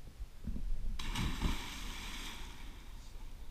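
A person plunges into deep water with a big splash.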